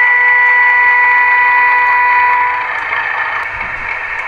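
A model locomotive rolls slowly away along the track.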